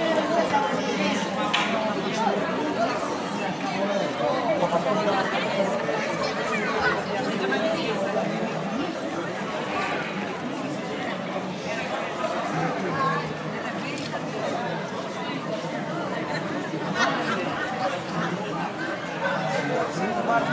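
A crowd of men and women chatters and shouts outdoors.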